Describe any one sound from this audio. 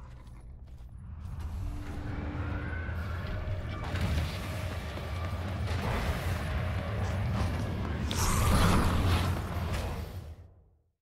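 A spaceship engine roars loudly and builds up.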